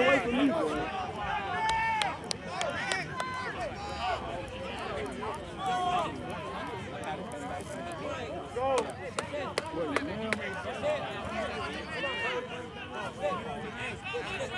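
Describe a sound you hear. A crowd of young players and onlookers shouts and calls out outdoors.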